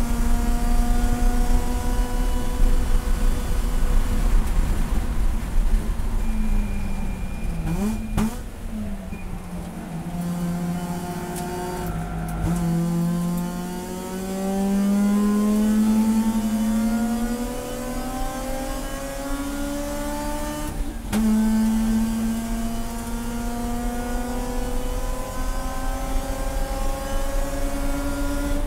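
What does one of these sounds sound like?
A race car engine roars loudly from inside the cabin, dropping in pitch for corners and rising as it accelerates.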